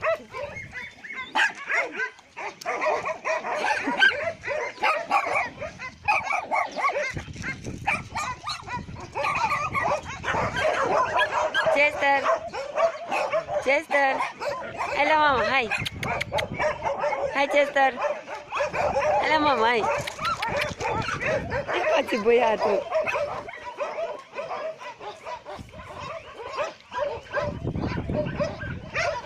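Dogs bark and yelp nearby.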